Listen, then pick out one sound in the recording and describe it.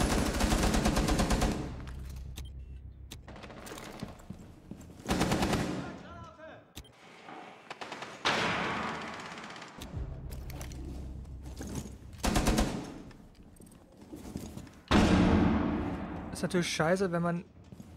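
Rapid gunfire rattles in short bursts.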